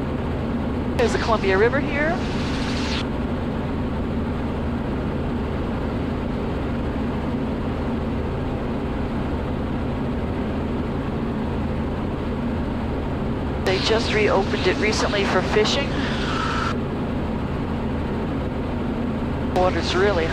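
A woman speaks calmly over a headset intercom in short bursts.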